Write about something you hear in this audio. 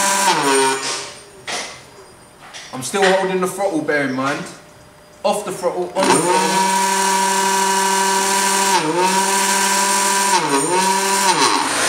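An electric scooter motor whines as its wheel spins, the pitch rising and dipping in short bursts before holding steady.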